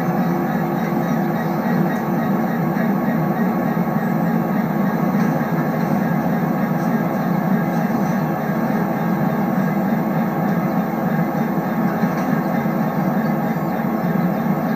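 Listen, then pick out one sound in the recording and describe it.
A train engine hums steadily as the train rolls along the rails.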